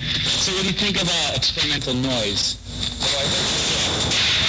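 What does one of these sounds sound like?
A man speaks, heard through a loudspeaker.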